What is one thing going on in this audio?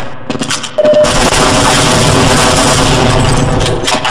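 Gunshots crack in quick bursts, close by.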